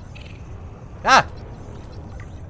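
An electronic chime sounds as a scan completes.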